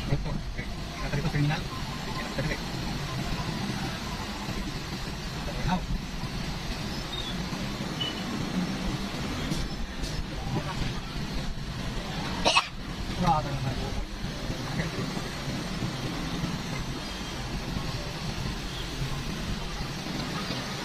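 Tricycle motors putter nearby in the street traffic.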